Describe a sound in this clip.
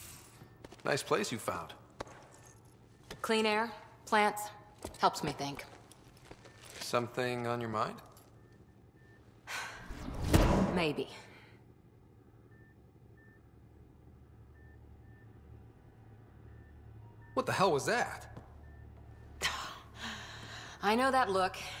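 A young woman speaks warmly, close by.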